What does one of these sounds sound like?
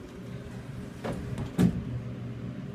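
Lift doors slide shut with a soft thud.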